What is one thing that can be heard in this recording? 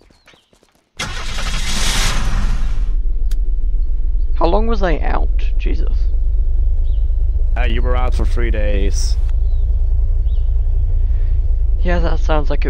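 A car engine starts with a roar and then rumbles steadily.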